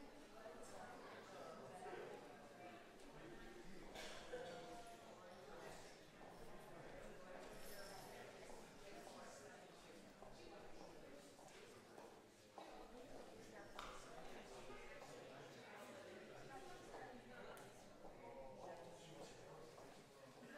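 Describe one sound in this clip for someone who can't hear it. An audience chats in a murmur of many voices in an echoing hall.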